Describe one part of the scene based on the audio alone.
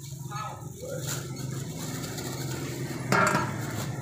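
A metal bowl clatters on a scale.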